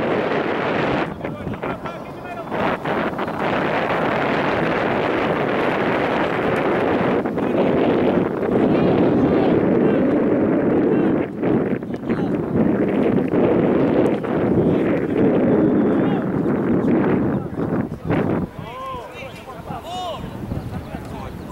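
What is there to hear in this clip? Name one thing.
Young men shout to each other from across a field.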